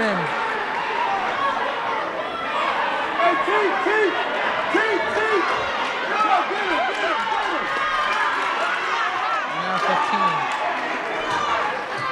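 A crowd of spectators murmurs and chatters in the background.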